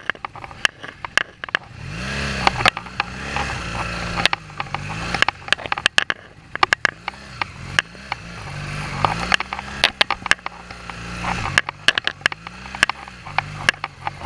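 A motorcycle knocks and rattles over rough ground.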